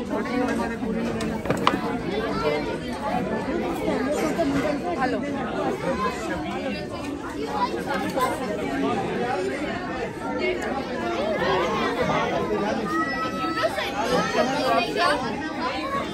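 A crowd of men, women and children chatter all around in a large room.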